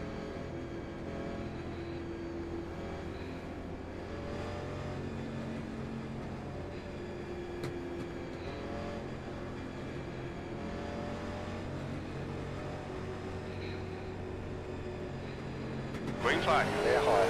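Several race car engines drone steadily at low speed.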